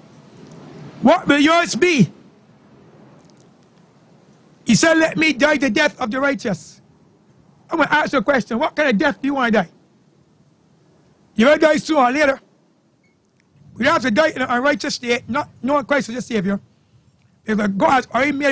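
An elderly man preaches with animation into a microphone, outdoors, in bursts separated by pauses.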